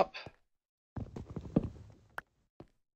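An axe chops at a wooden chest with quick knocks.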